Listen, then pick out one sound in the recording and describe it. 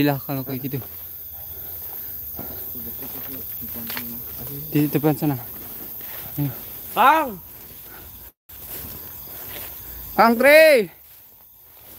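A man talks and calls out loudly nearby.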